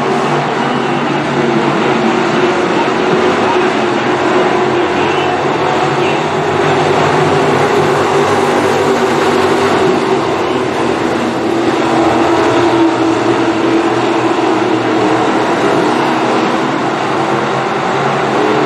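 Race car engines roar loudly as the cars speed around a dirt track.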